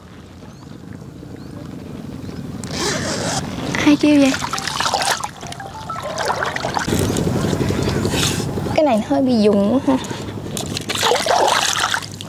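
Water splashes and sloshes as a net is pulled through it.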